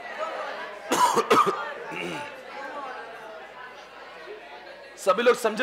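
A man coughs loudly close by.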